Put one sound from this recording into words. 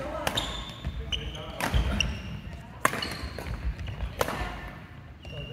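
Rackets strike a shuttlecock with sharp pops that echo in a large hall.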